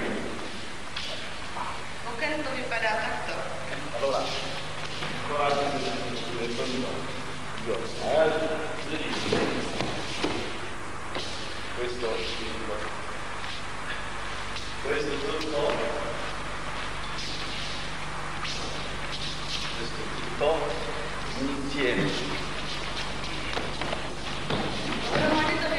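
A man speaks calmly at a distance in an echoing hall.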